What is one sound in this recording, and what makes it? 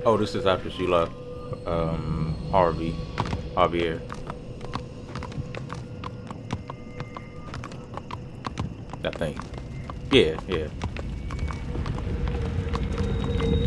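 A horse's hooves clop slowly on the ground.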